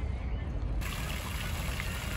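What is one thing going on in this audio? Water splashes from a fountain.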